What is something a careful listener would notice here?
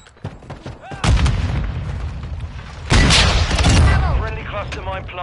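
A gun fires in loud bursts.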